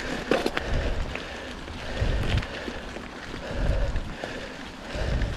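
Bicycle tyres roll and crunch over dry fallen leaves.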